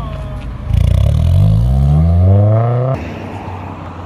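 A sports car engine revs loudly, rising in pitch as the car speeds away.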